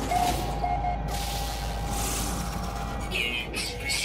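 An electronic scanner whirs and chimes.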